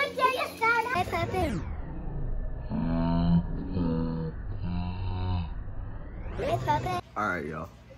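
A boy talks excitedly close by.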